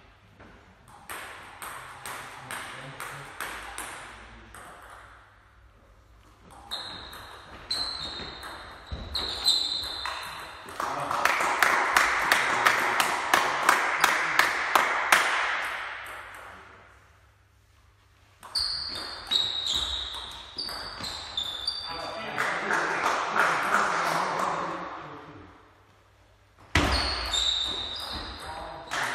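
A table tennis ball clicks back and forth between paddles and bounces on the table in a large echoing hall.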